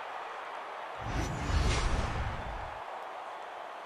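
A deep whoosh sweeps past.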